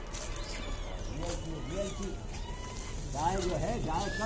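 A monkey rustles through dry leaves.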